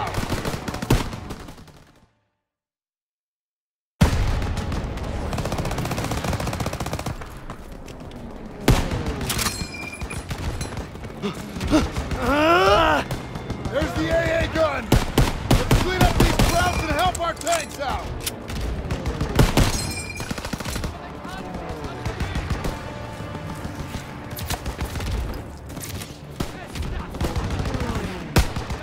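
Gunshots crack and echo in repeated bursts.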